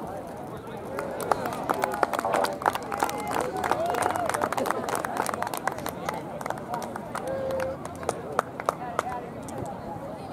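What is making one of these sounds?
Spectators clap and cheer.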